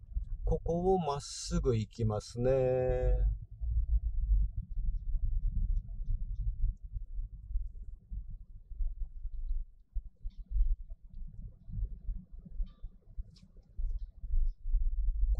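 A car drives along with a low, steady rumble from inside the car.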